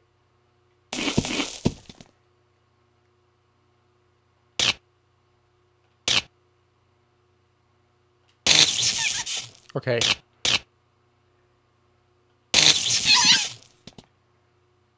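Electronic game sound effects zap and chime in short bursts.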